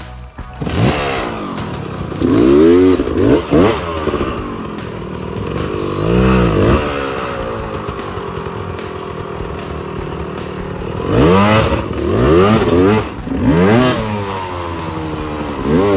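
A dirt bike engine revs hard in bursts and idles between them.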